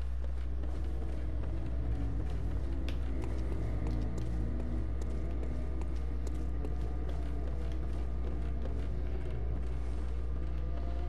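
Quick footsteps thud on wooden boards and stone.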